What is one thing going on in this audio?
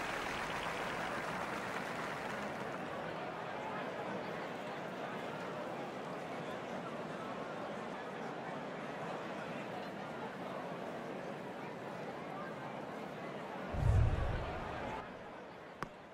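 A crowd murmurs softly.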